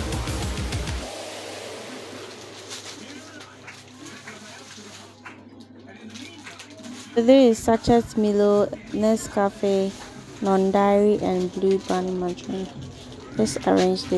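Strips of plastic sachets rustle and crinkle as they are handled.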